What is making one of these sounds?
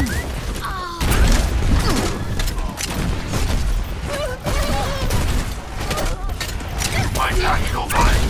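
A grenade launcher fires with hollow thumps.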